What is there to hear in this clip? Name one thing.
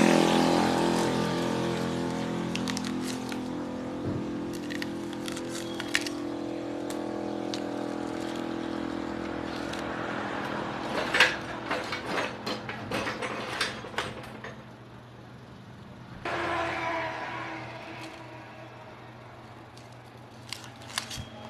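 A heavy metal drum hums as it spins, slowly winding down.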